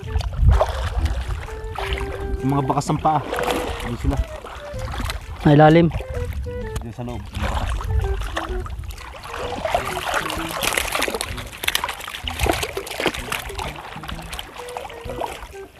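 Water splashes and sloshes as men wade through it.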